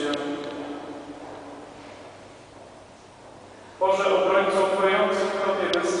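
A congregation sings together, echoing in a large hall.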